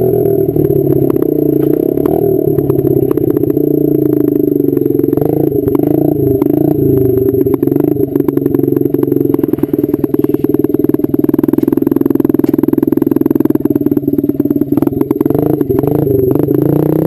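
A motorcycle engine hums steadily up close, rising and falling with the throttle.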